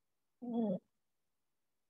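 A man says a short word into a microphone.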